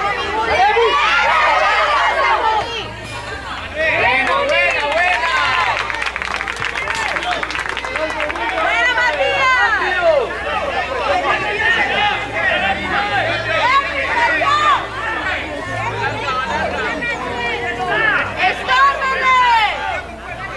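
Young children shout and call out across an outdoor field.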